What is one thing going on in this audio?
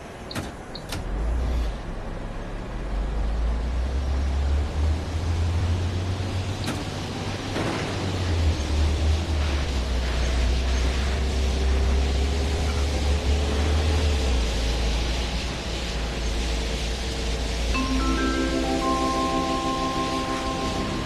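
A bus engine rumbles deeply as the bus pulls away and drives on.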